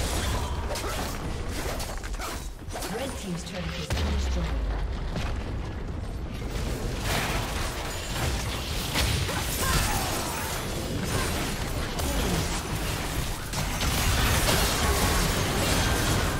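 Video game spell effects crackle, whoosh and boom during a battle.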